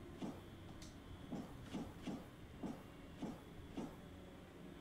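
Small footsteps patter.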